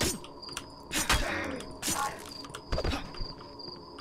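Heavy blows thud in quick succession.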